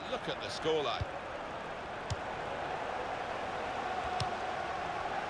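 A football is kicked with a few dull thuds.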